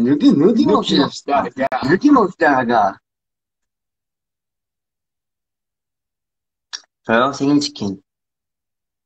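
A young man speaks with animation, close to a phone microphone.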